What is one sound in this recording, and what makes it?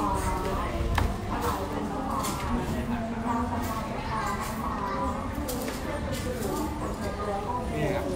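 A stack of books thumps onto a counter.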